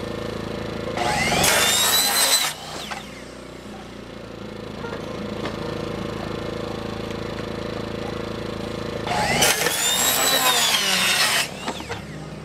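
A circular saw whines loudly as it cuts through wood in short bursts.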